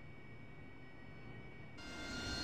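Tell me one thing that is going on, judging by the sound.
A jet engine roars louder as it powers up.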